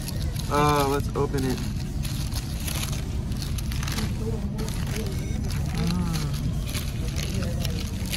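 Paper wrapping crinkles and rustles as it is unfolded.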